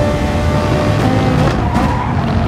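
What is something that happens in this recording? Tyres rumble over a kerb.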